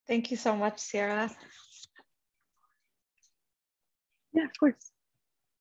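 A young woman speaks calmly through an online call, with pauses.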